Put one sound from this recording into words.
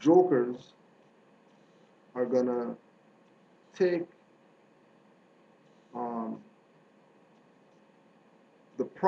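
A man speaks calmly in short phrases with pauses, close to a microphone.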